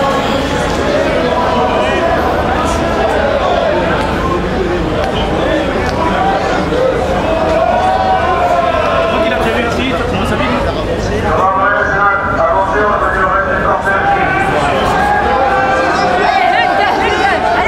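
Many men and women talk nearby in a street crowd.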